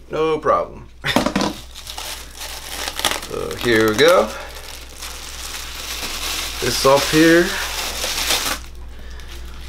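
Plastic items rustle and clatter as hands handle them.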